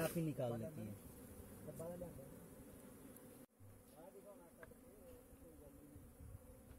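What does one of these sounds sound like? Bees buzz around a hive.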